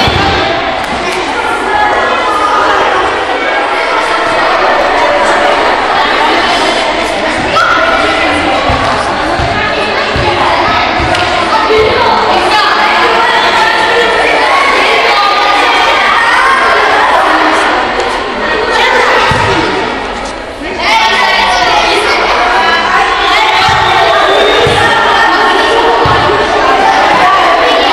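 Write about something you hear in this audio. Many children chatter and shout in a large echoing hall.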